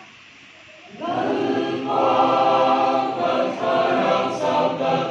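A choir of young men and women sings together in an echoing hall.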